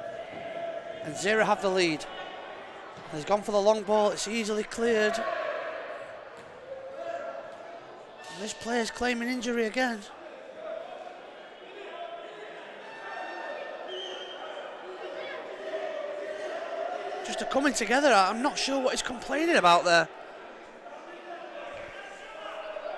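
A small crowd murmurs in a large echoing hall.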